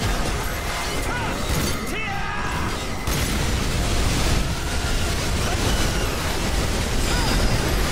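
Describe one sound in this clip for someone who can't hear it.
Explosions rumble and crash.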